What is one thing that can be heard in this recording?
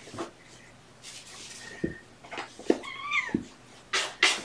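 A man speaks softly and close by.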